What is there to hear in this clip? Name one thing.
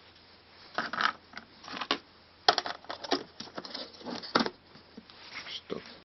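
A plastic box clicks and rattles as hands handle it.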